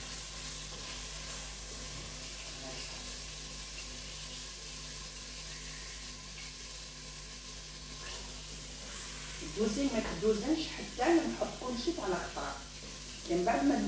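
Pieces of food drop into a metal pot.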